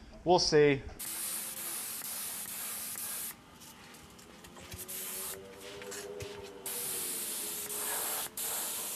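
A paint spray gun hisses loudly in bursts.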